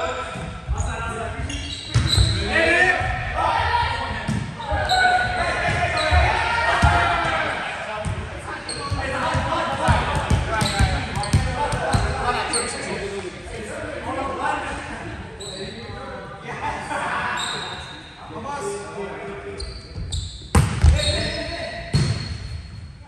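Young men call out and talk across a large echoing hall.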